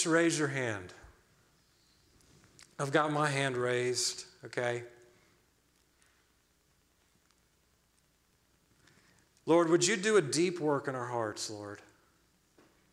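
A man speaks with animation through a microphone, with pauses between phrases.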